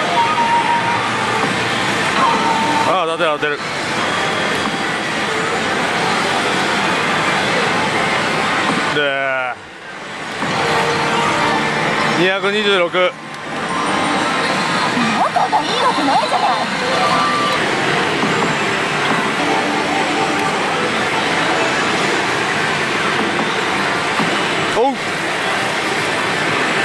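A slot machine plays loud electronic music and effects.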